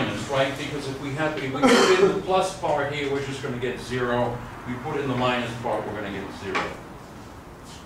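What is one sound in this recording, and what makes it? An elderly man speaks calmly and clearly.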